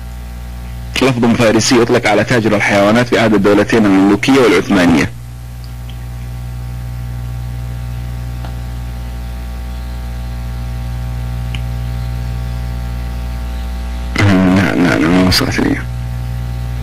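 A young man speaks through a microphone with animation.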